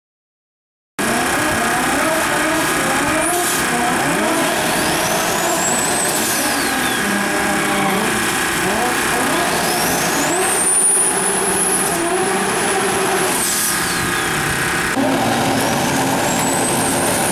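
A car engine revs hard and roars.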